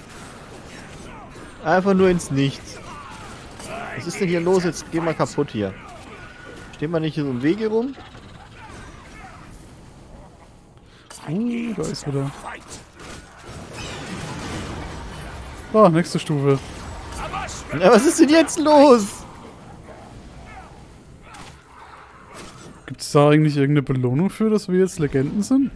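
Magic spells crackle and blast in quick bursts.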